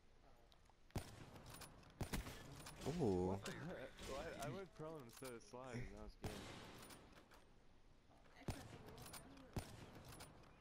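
Gunshots crack sharply, one at a time.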